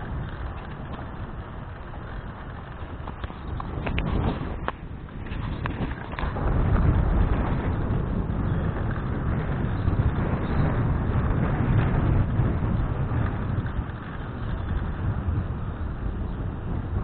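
Tyres roll over a paved path.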